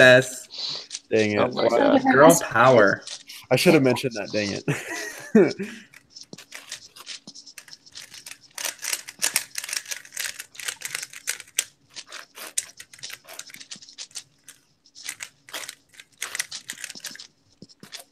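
Plastic puzzle cube pieces click and clack rapidly as they are turned.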